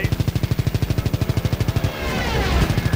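Machine guns on a fighter plane fire in a rapid burst.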